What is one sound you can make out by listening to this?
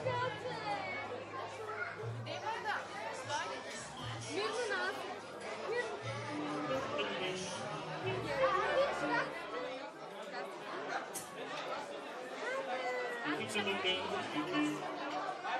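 Adults talk in the background of a busy, noisy room.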